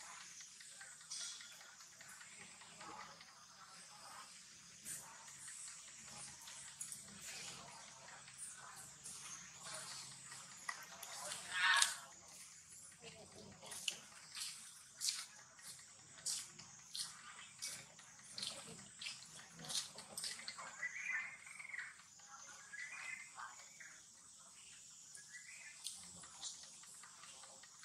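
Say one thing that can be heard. A small monkey rustles and plucks leaves close by.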